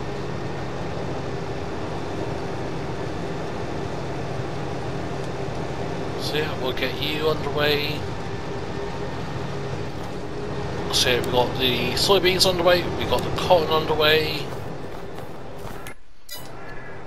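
A harvester engine drones steadily.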